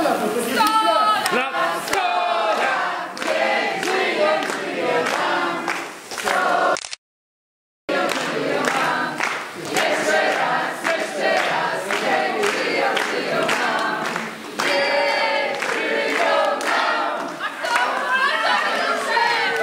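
A crowd claps hands in a steady rhythm.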